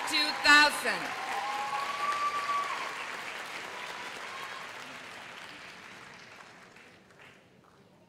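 An audience applauds and cheers in a large hall, then fades.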